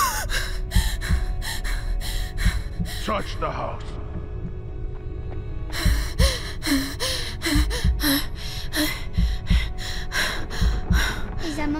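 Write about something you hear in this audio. A young woman speaks in a frightened voice.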